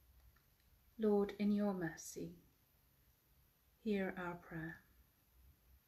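A middle-aged woman speaks softly and calmly, close by, in two short phrases.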